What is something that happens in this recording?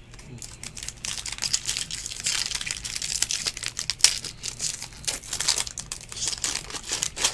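A foil wrapper crinkles and rustles as hands tear it open.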